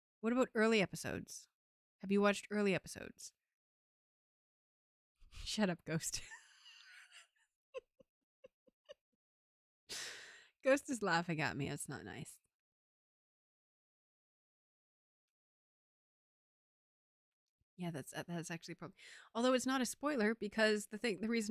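A young woman talks casually into a close microphone, with pauses.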